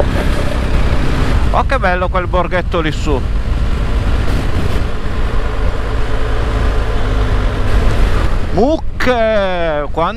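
Wind rumbles loudly past a moving motorcycle.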